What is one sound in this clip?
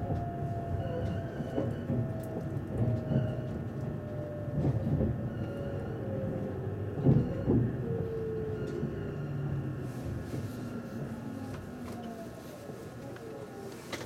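A train's motor whines, falling steadily in pitch as it slows.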